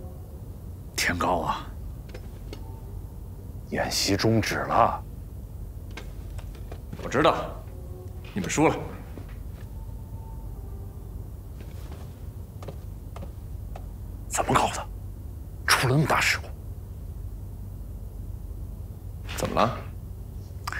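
A middle-aged man speaks in short, tense bursts close by.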